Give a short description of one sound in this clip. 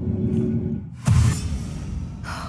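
A magic blast strikes with a sudden loud burst.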